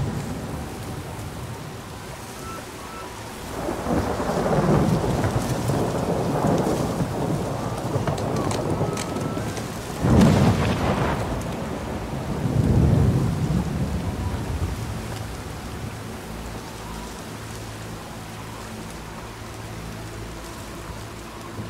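Heavy footsteps splash through shallow water.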